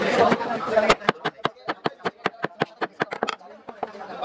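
A hammer taps rapidly on wood.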